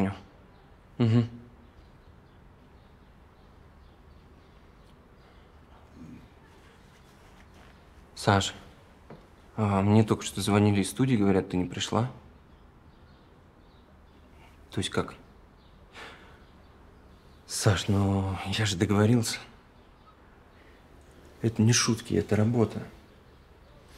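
A young man talks close by in a calm, tense voice.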